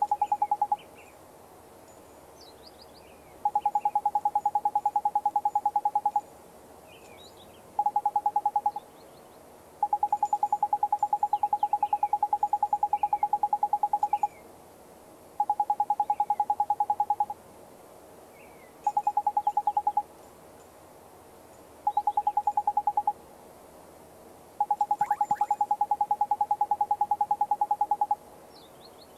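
Rapid electronic blips chatter in short bursts.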